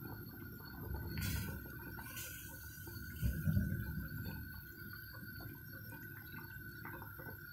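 A spatula stirs and scrapes through soup in a metal pot.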